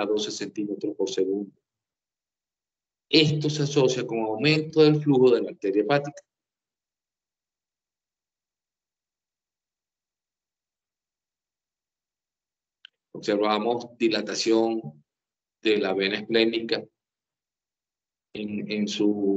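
A man speaks calmly over an online call, in bursts with long pauses.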